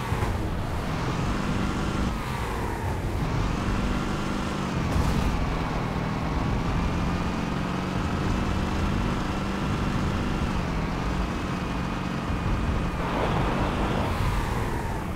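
A vehicle engine hums and revs steadily as it drives along.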